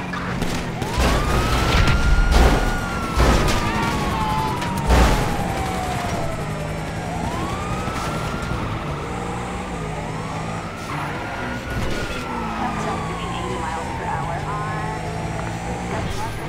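Police sirens wail nearby, rising and falling.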